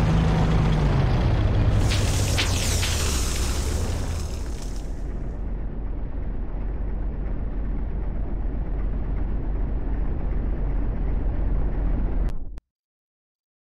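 A tank engine rumbles low and steady, then cuts off.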